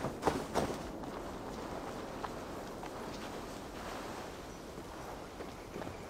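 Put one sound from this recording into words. Footsteps rustle through dry grass.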